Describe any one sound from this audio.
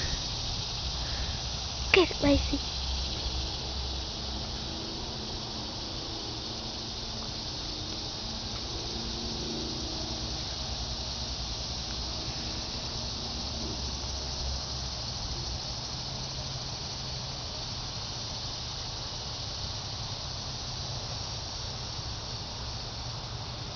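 A dog sniffs at the ground close by.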